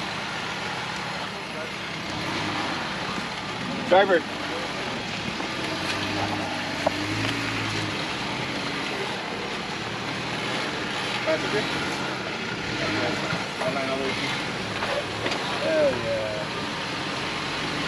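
Tyres grind and scrape on rock.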